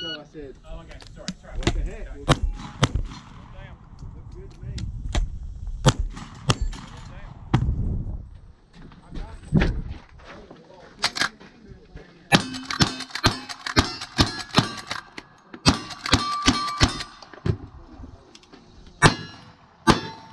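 Shotgun blasts ring out outdoors, one after another.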